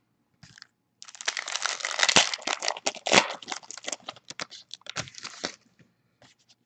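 Plastic wrapping crinkles and tears as a pack is opened.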